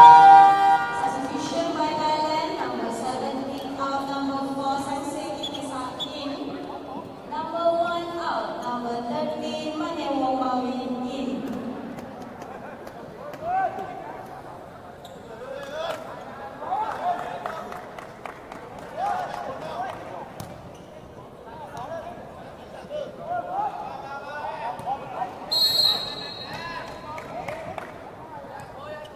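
A volleyball is hit with a sharp slap.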